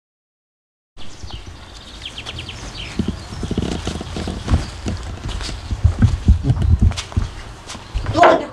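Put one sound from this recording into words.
Children talk among themselves outdoors.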